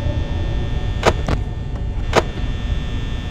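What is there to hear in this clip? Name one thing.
An electronic monitor flips up with a clattering click.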